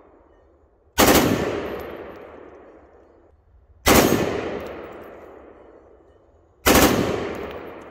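A rifle fires loud single shots outdoors, each echoing and slowly dying away.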